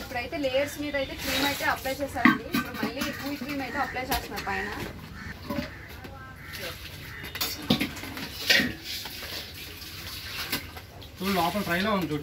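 A knife scrapes cream out of a plastic bucket.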